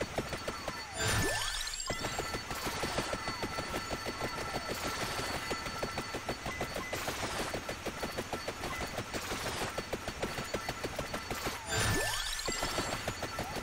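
Game sound effects sweep and whoosh every few seconds.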